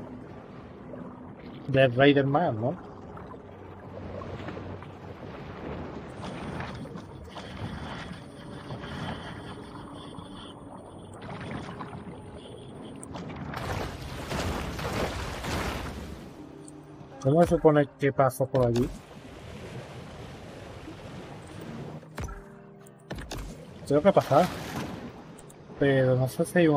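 Water swishes and gurgles as a creature swims underwater.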